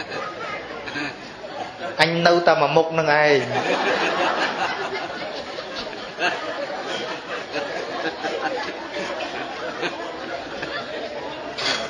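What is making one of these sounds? An elderly man speaks calmly and steadily into a microphone.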